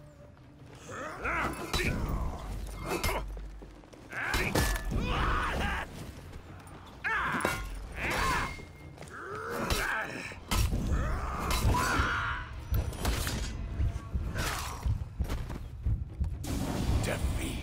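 Steel blades clash and ring in a fight.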